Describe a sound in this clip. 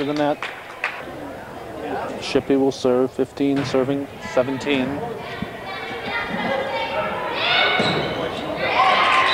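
Girls on a team shout and cheer loudly, their voices echoing.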